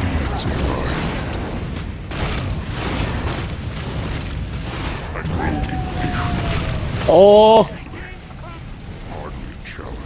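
Game combat sounds clash and burst with spell effects.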